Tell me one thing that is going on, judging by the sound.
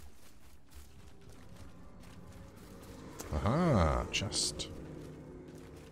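Footsteps crunch on dirt and stones.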